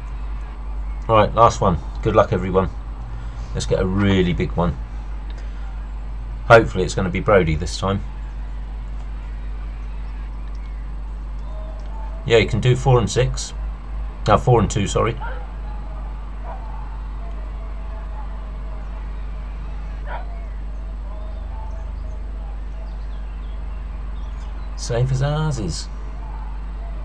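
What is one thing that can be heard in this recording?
A middle-aged man talks casually into a microphone in short bursts.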